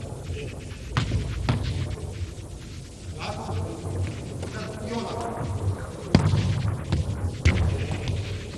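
A ball bounces on a hard floor with sharp thuds.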